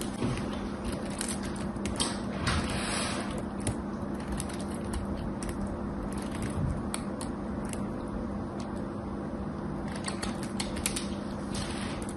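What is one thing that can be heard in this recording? Soap shavings crackle and rustle between fingers.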